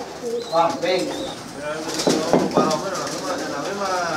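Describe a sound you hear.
A pigeon's wings flap loudly as it takes off.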